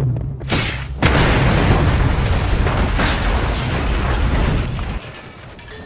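Debris and fire crackle after the blast.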